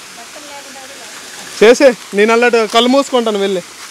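A small waterfall splashes onto rocks.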